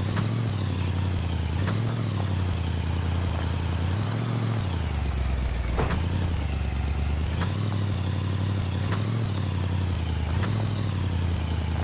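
A vehicle engine rumbles steadily, rising and falling in pitch.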